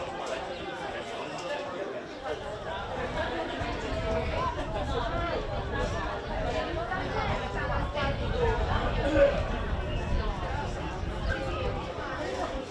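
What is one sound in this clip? Children shout and call out across an open field.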